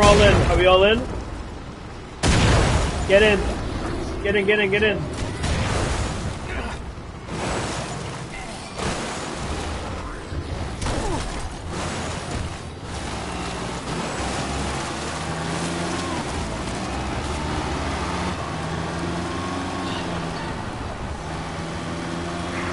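Tyres crunch over dirt and gravel.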